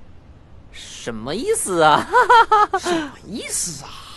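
A young woman speaks nearby.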